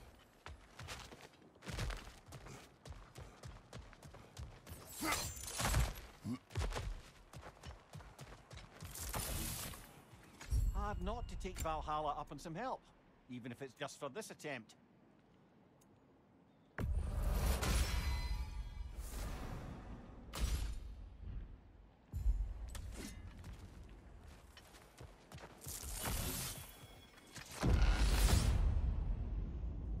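Heavy footsteps thud on wooden planks and stone.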